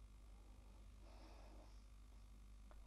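A woman murmurs quietly close by.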